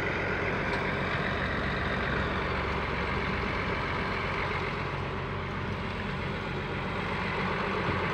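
A small truck drives slowly past.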